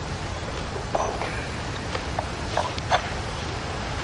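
A cup clinks against a saucer.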